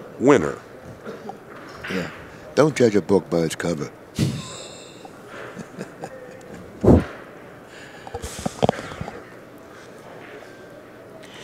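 Billiard balls click together as they are packed into a rack.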